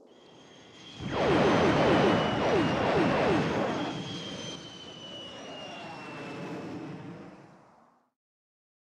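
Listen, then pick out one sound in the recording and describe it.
A loud rushing whoosh roars past and slowly fades away.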